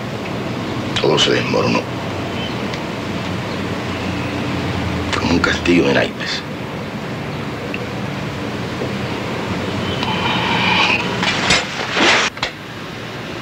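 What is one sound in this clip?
A man speaks in short, low phrases close by.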